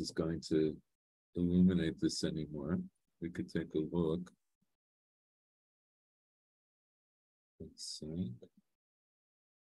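An elderly man speaks calmly into a microphone, as if on an online call.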